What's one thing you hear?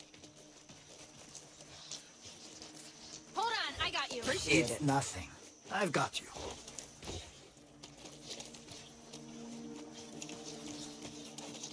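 Footsteps move through rustling bushes.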